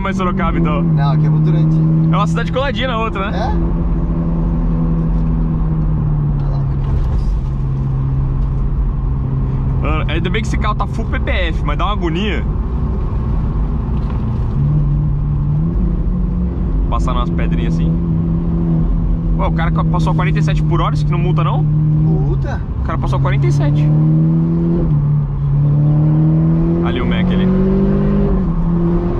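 A car engine drones loudly and steadily from inside the car.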